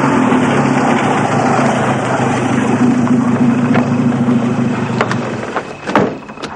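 An old car engine rumbles steadily.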